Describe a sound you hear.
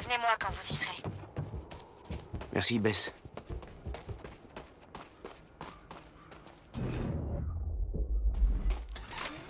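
Footsteps run quickly over hard ground.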